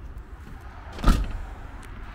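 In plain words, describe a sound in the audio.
A car boot lid slams shut with a thud.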